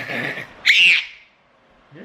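A toddler girl squeals and giggles close by.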